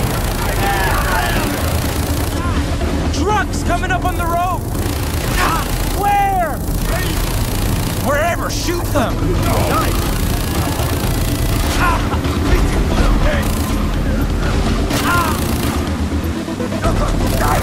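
A boat engine drones steadily over the water.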